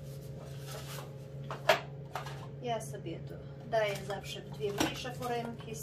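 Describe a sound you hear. Metal foil trays crinkle and clatter as they are set down on a hard surface.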